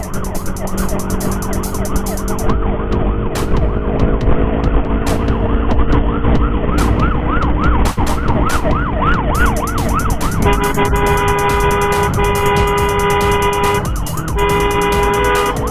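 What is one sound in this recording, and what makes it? A siren wails in quick rising and falling whoops, then changes to a steady two-tone blare.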